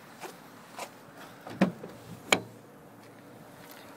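A car's rear hatch unlatches with a click and swings open.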